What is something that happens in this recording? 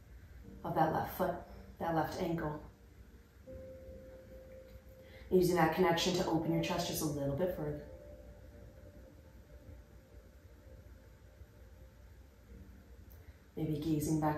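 A young woman speaks calmly and close by, giving instructions.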